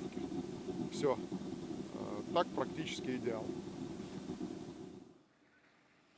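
A man talks calmly outdoors.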